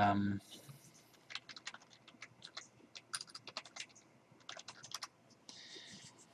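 Computer keys click rapidly as someone types.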